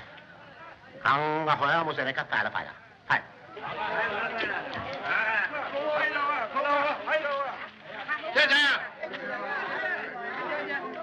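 A crowd of men and women chatter loudly on a busy street.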